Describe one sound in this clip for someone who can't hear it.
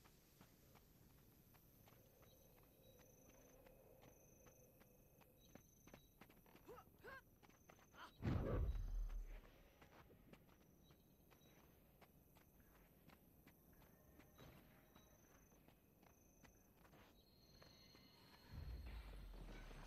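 Light footsteps patter steadily across grass.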